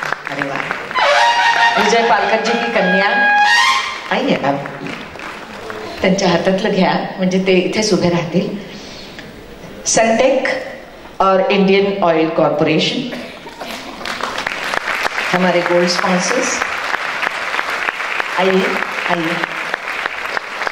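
A middle-aged woman speaks with animation through a microphone over loudspeakers in a large hall.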